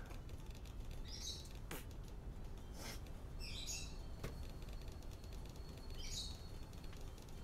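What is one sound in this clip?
Balloons pop with short, sharp bursts.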